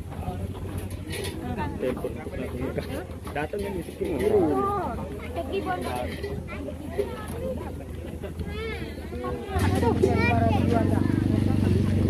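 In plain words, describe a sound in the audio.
A young woman speaks nearby with animation.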